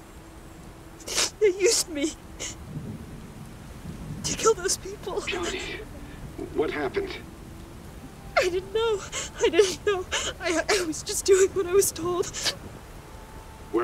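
A young woman speaks in a trembling, frightened voice.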